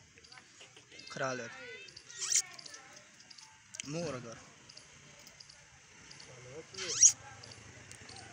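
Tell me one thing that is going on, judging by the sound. A man speaks nearby in short calls.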